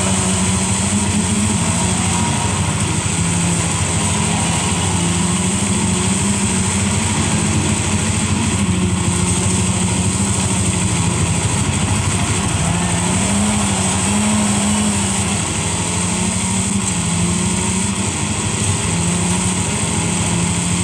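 Tyres crunch and skid on gravel through a loudspeaker.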